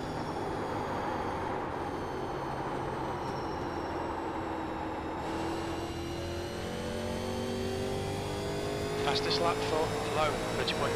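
A race car engine drones steadily, rising slowly in pitch.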